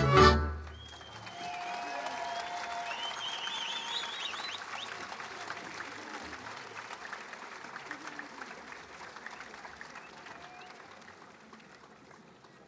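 A large outdoor crowd applauds and cheers, then the applause slowly fades.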